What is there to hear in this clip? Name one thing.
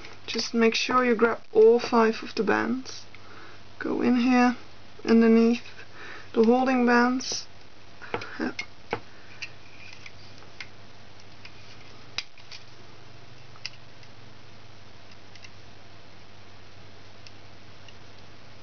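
Rubber bands snap and click softly against a plastic loom.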